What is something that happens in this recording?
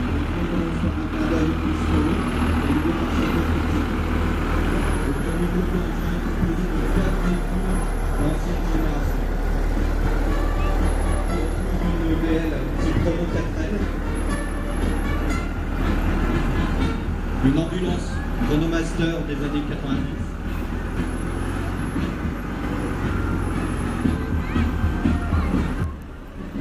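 A heavy old truck engine rumbles loudly as it drives slowly past close by.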